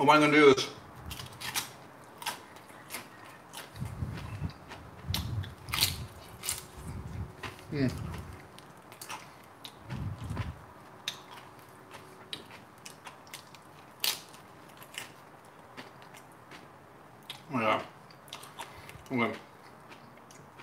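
A man chews and crunches chips close by.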